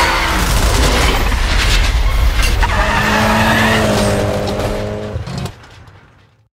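A car engine roars loudly and revs.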